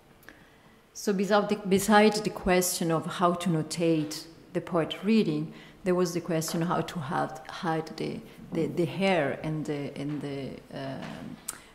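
A woman speaks into a microphone in an echoing hall.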